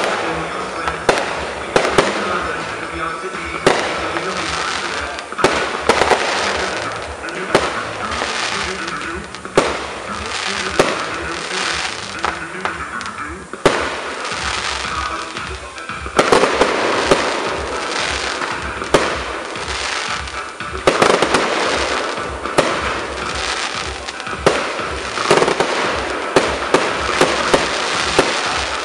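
Fireworks bang and boom sharply outdoors.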